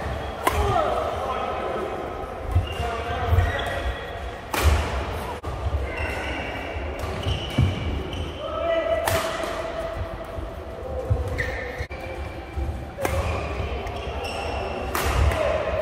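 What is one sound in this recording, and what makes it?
Badminton rackets smack a shuttlecock back and forth in a large echoing hall.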